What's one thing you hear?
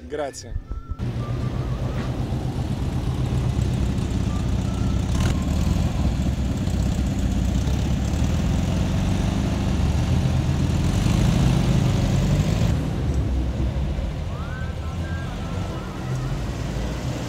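An old car engine chugs as cars drive past.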